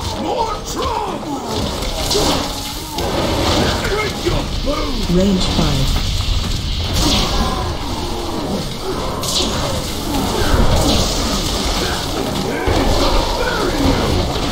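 Video game spell effects crackle and whoosh during a fight.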